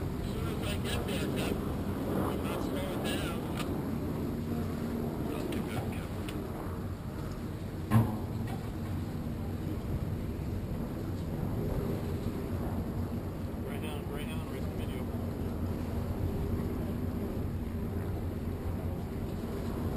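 Choppy water sloshes and splashes steadily.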